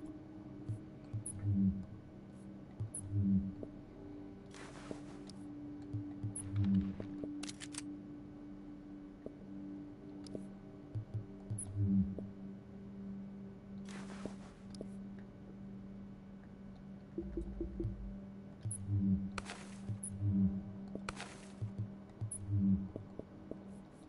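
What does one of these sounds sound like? Soft electronic blips and clicks sound again and again.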